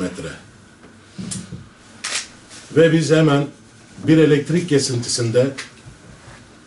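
A middle-aged man speaks firmly into close microphones, in short bursts.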